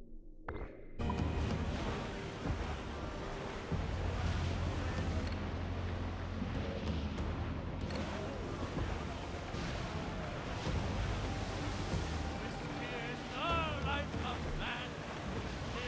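Waves wash and splash against a wooden sailing ship's hull.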